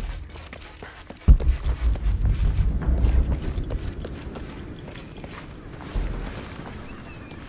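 Footsteps run quickly over stone and earth.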